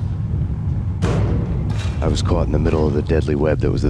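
Heavy metal doors slide open.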